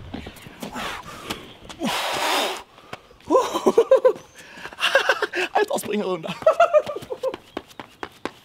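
Sneakers scuff and slap on asphalt as a young man runs.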